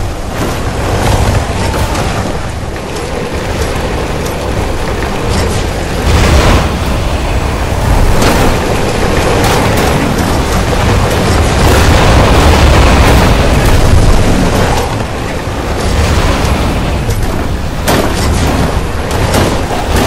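A game vehicle's engine roars steadily as it drives.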